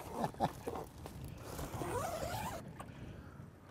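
A zipper on a bag is pulled shut.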